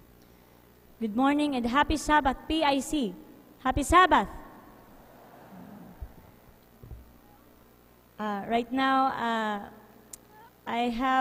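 A young woman sings into a microphone, heard over loudspeakers in a large echoing hall.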